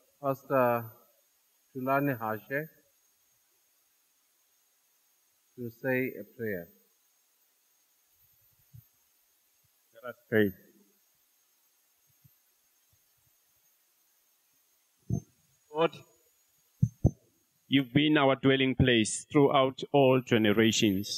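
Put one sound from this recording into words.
A man speaks in short phrases with long pauses.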